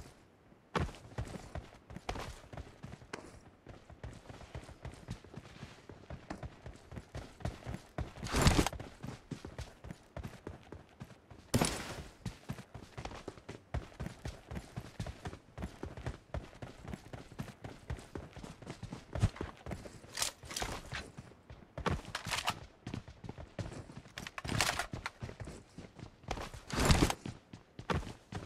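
Footsteps patter quickly on dirt and gravel.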